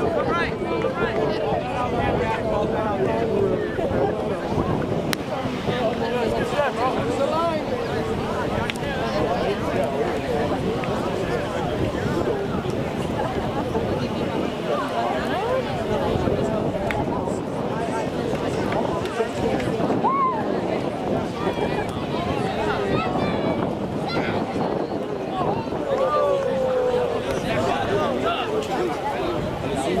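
A crowd of young men chatters and calls out outdoors.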